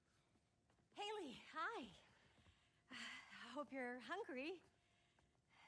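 A woman calls out a cheerful greeting.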